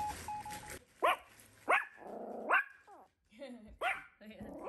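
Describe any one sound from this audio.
A small dog whines in short high rising cries.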